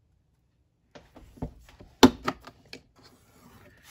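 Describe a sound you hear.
A plastic tool taps and scrapes against a hard board.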